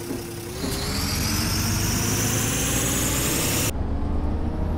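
Air hisses loudly, then stops abruptly.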